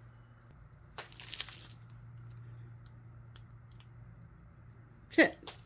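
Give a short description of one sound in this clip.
A plastic squeeze bottle crinkles as it is squeezed.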